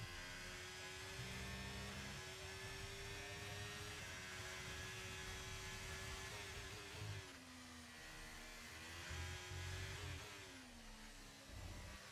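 A racing car engine screams at high revs, its pitch dropping sharply when it slows for a corner and climbing again as it speeds up.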